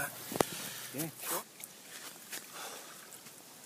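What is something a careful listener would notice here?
Water splashes gently.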